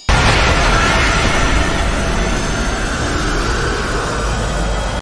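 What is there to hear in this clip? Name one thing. A loud, steady magical blast roars and crackles.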